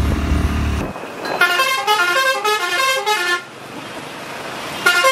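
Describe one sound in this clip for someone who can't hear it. Motorcycle engines hum in passing traffic.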